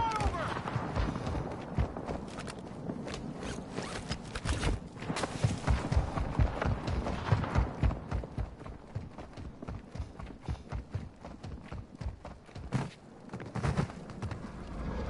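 Footsteps run quickly over dry, gravelly ground.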